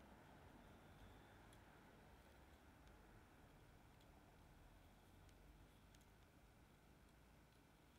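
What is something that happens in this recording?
A hot wire tip hisses and crackles faintly against wood.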